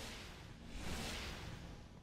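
A gun fires a quick shot.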